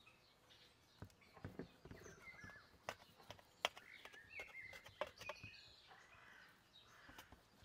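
A knife saws through a crusty loaf of bread with crisp crunching.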